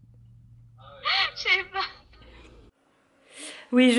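A young woman talks close by, calmly.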